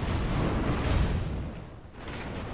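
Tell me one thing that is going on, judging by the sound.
A heavy weapon whooshes through the air.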